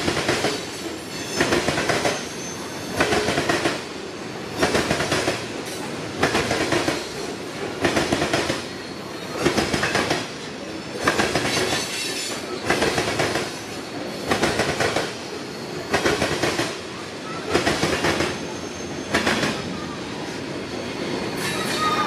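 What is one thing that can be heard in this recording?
Train wheels clatter over rail joints in a regular rhythm.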